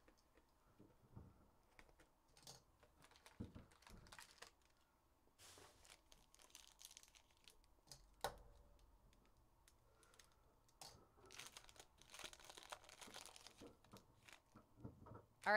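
Foil wrappers crinkle and rustle as they are torn open and handled.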